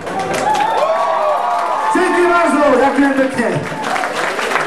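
A man sings loudly into a microphone over a live band.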